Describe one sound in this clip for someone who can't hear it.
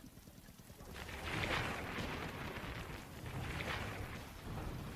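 Water splashes and rushes past a slowly moving boat.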